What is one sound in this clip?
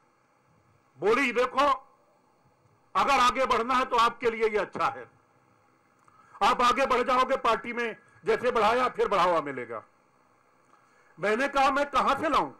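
A middle-aged man speaks into microphones in bursts, with pauses between.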